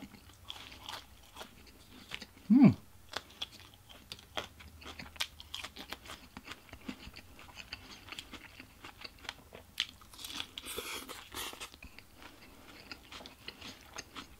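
A man chews food loudly and smacks his lips close to a microphone.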